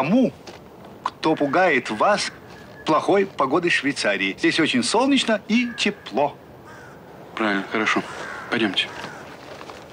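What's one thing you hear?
A middle-aged man speaks in a low voice close by.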